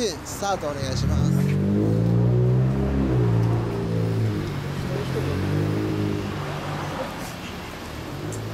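A motorcycle engine idles and revs with a deep rumble.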